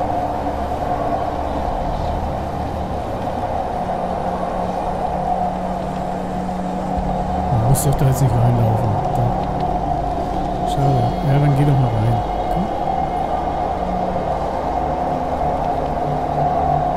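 A large fire roars steadily.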